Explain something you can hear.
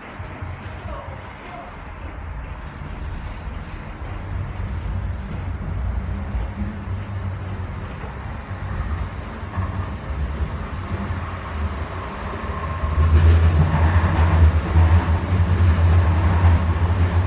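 A train car rumbles steadily along the tracks, growing louder.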